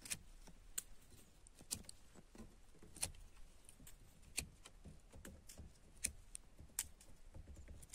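Pruning shears snip through thin branches with sharp clicks.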